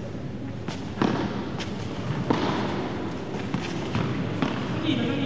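A padel ball bounces off glass walls.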